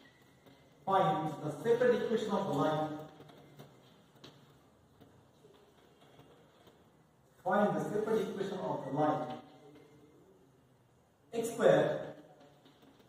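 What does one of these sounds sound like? A man speaks in a loud, clear voice, reading out slowly in short bursts, in an echoing room.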